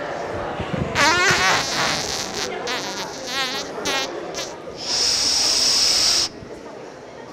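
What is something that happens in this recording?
An audience of children laughs and claps.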